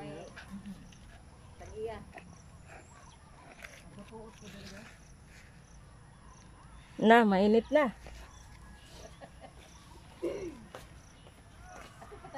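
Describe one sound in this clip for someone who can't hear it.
Women talk quietly at a distance outdoors.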